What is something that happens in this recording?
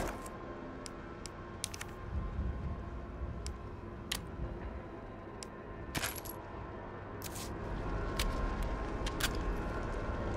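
Short soft clicks tick now and then as a menu is browsed.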